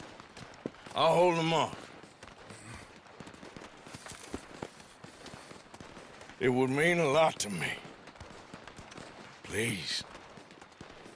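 A man speaks quietly and pleadingly, close by.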